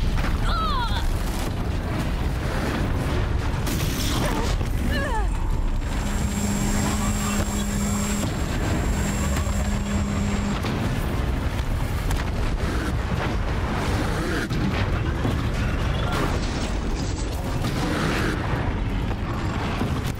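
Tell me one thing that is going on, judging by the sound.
Weapons crackle, zap and explode in a busy fight.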